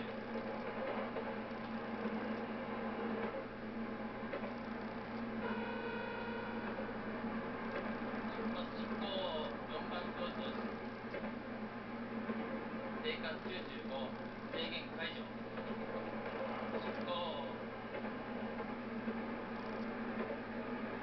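An electric commuter train runs at speed along the tracks.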